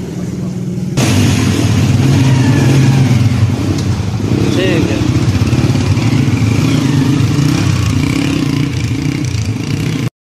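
A motorcycle engine revs louder as the motorcycle rides off.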